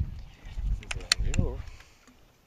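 A fishing reel clicks sharply as a line is cast.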